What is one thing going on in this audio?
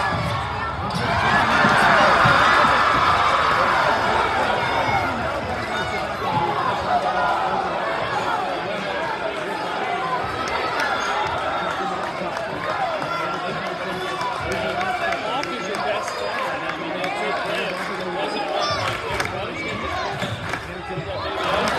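A crowd cheers and chatters loudly in a large echoing gym.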